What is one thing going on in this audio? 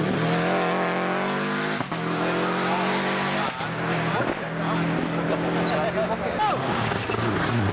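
A rally car engine roars at high revs, with brief breaks between gear shifts.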